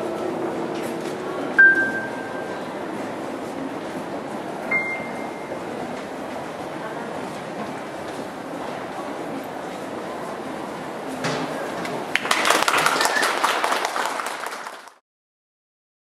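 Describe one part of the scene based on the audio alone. A cymbal rings out.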